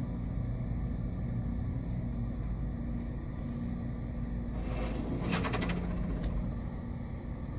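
Car wash machinery hums and rumbles steadily from inside a car.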